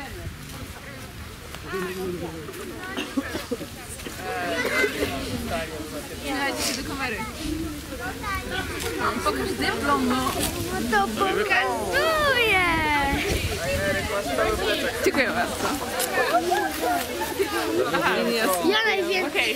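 Children and young people chatter and talk excitedly close by, outdoors.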